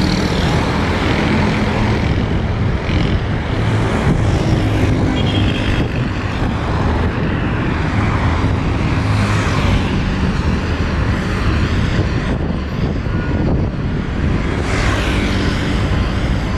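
Cars pass by with a rising and fading whoosh.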